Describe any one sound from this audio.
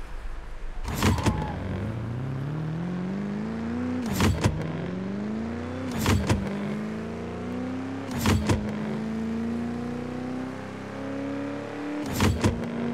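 Sharp bursts crack at each gear shift.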